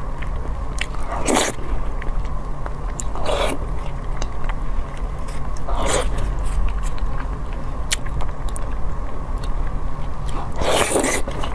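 A woman slurps noodles loudly, close up.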